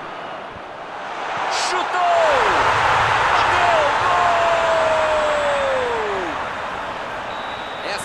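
A stadium crowd roars and cheers loudly, then fades.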